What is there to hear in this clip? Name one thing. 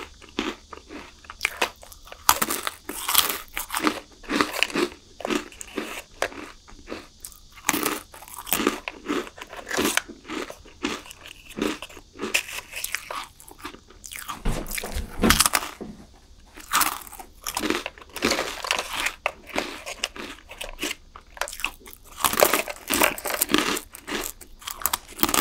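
A young woman crunches and chews chocolate snacks close to a microphone.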